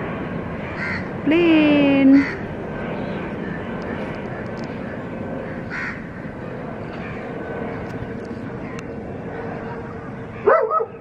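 A jet plane drones faintly in the distance.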